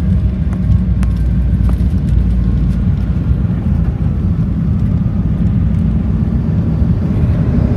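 A jet engine roars steadily close by.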